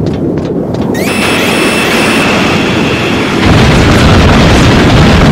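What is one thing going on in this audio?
Missiles whoosh through the air.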